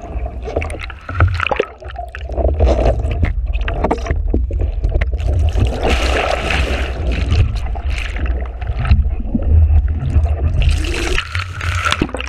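Water churns and rushes loudly underwater.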